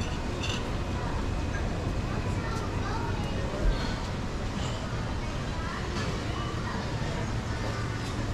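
Distant voices murmur from people walking along an open walkway.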